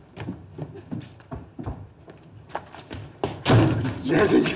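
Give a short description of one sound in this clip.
Footsteps knock on a wooden stage floor.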